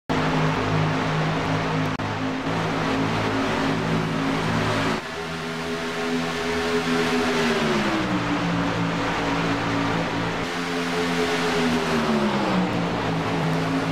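Racing engines roar steadily, their pitch dipping and rising as the trucks shift gears.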